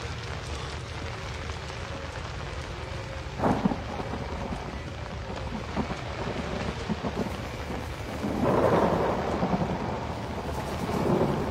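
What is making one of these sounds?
Footsteps splash on wet ground.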